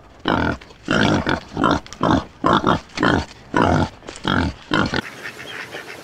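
Wild pigs grunt and snort close by.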